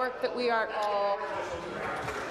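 A middle-aged woman speaks calmly into a microphone.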